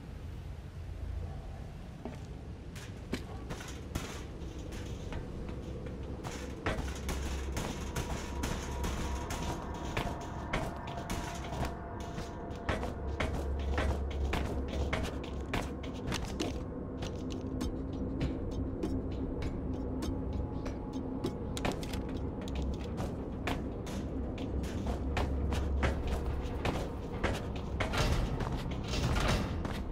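Footsteps clank on a metal grating.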